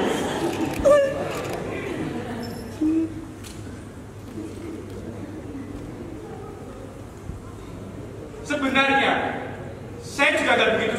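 Young men talk with animation.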